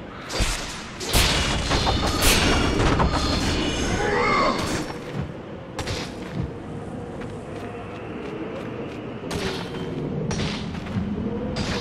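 A sandstorm wind roars steadily.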